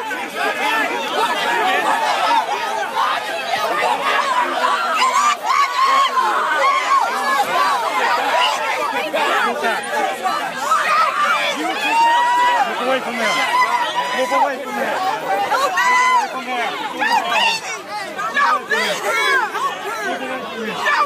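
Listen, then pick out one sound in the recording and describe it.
A crowd of men and women shout and argue loudly outdoors.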